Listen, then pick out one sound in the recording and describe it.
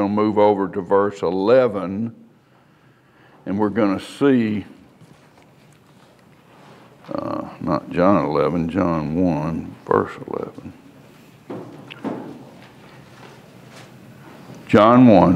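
An older man speaks calmly into a clip-on microphone, pausing between phrases.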